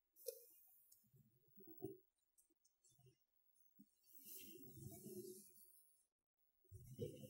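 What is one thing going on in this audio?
A man speaks quietly and slowly into a microphone.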